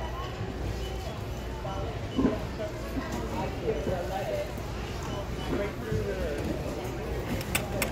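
A crowd of people chatter nearby in a large echoing hall.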